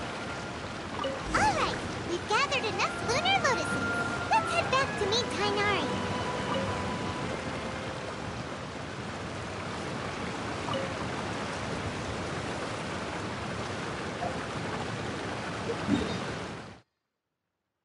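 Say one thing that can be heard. Chiming, swooping game sound effects play over a steady rushing background.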